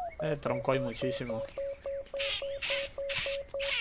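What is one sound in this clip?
A metal detector beeps in quick, even pulses.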